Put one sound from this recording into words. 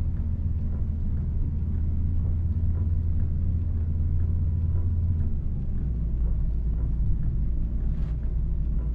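A bus engine hums low and steady, dropping in pitch partway through.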